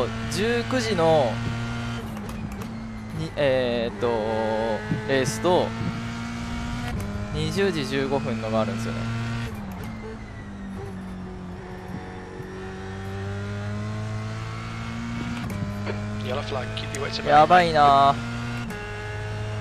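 A racing car engine drones steadily and shifts pitch as it changes gear.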